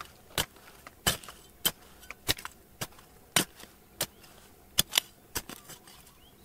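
A small trowel scrapes and chops into dry, stony soil with sharp repeated strikes.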